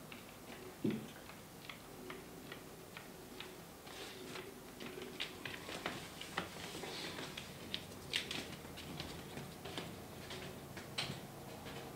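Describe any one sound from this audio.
A man brushes his teeth with quick scrubbing strokes.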